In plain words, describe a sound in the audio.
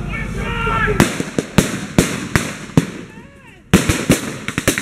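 Rifle shots crack outdoors in rapid bursts.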